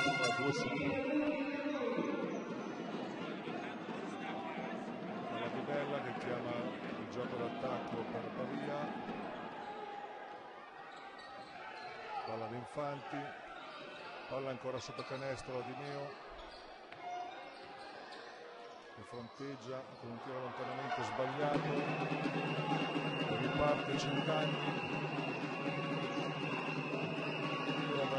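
Sneakers squeak on a court.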